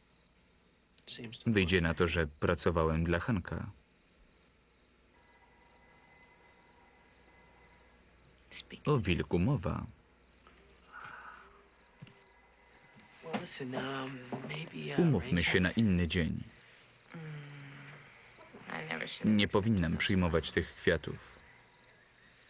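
A young man speaks quietly and intensely, close by.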